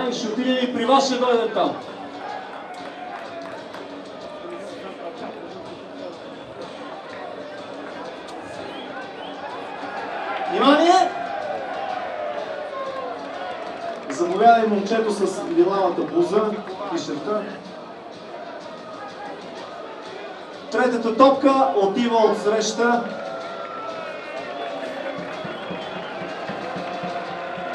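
A large stadium crowd murmurs and calls out outdoors.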